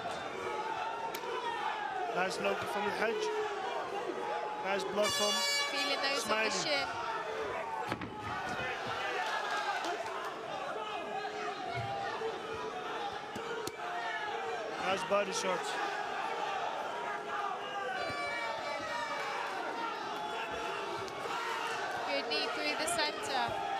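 Gloves thud against bodies in quick bursts.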